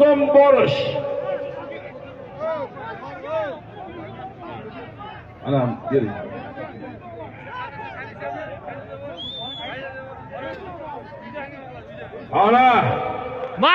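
A large crowd of men shouts and calls out in the open air, some close and some far off.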